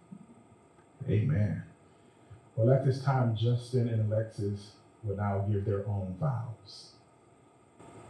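A young man speaks clearly and loudly nearby.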